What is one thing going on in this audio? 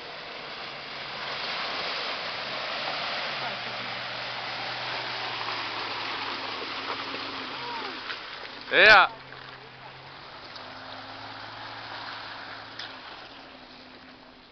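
A sport utility vehicle's engine labours as it drives through a creek.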